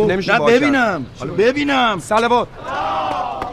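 A young man speaks loudly and with animation, close by.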